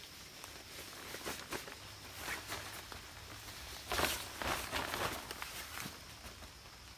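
A canvas tarp rustles as it is pulled and adjusted.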